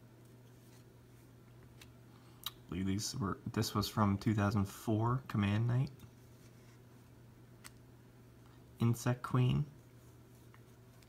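Playing cards slide and rustle softly against each other in someone's hands.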